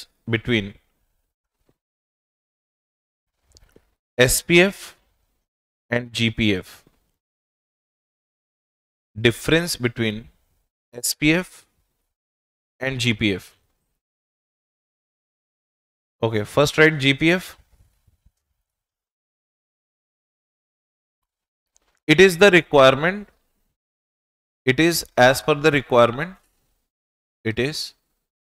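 A man lectures calmly into a close microphone, in short bursts with long pauses.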